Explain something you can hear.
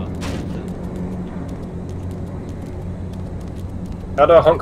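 Footsteps tap steadily on pavement.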